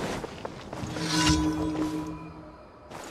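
A magical chime shimmers and whooshes.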